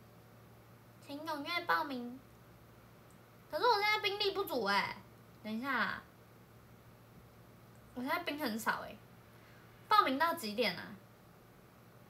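A young woman speaks close by in short, lively bursts.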